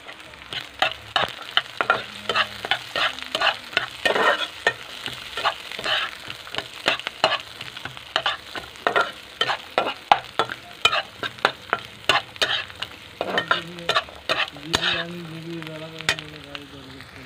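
A spatula scrapes and clacks against a frying pan.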